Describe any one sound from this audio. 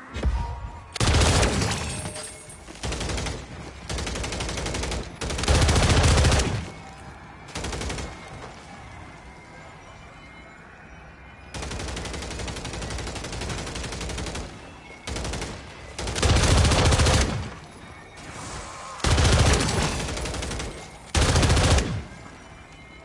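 Rapid gunfire bursts loudly and repeatedly.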